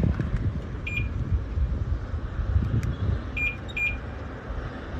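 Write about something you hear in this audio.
A car chirps briefly a few times as its key fob is pressed.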